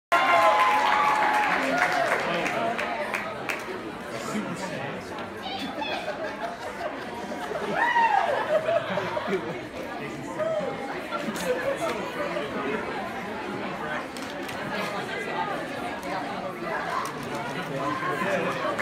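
Young men and women speak and call out with animation in a large echoing hall.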